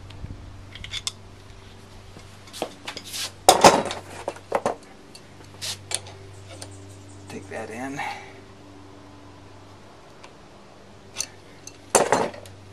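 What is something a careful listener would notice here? A metal wrench clicks and clanks against an engine pulley.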